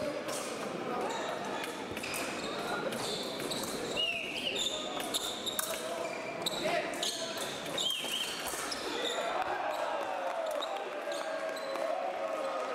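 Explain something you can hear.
Fencers' shoes squeak and shuffle on a hard floor.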